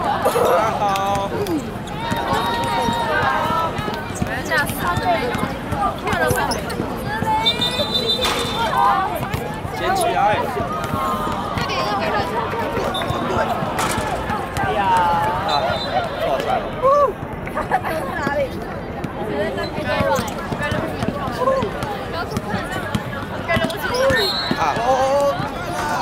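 Young people shout and chatter outdoors.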